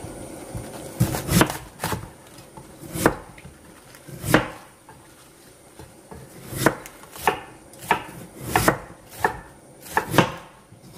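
A knife chops through cabbage onto a wooden board with crisp knocks.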